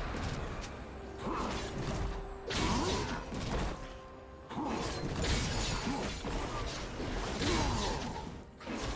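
Game spell blasts and weapon hits crackle in quick bursts.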